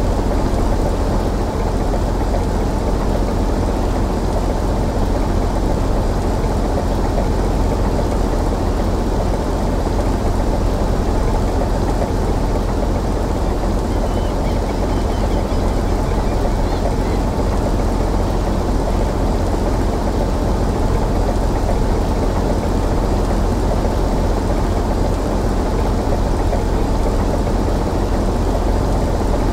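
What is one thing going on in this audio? Rough sea waves wash against a ship's hull.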